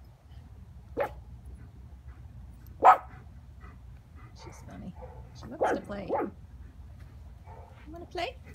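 A small dog growls and yaps playfully close by.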